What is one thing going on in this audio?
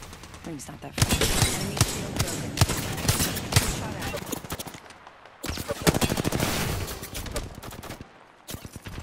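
Guns fire in rapid, loud bursts.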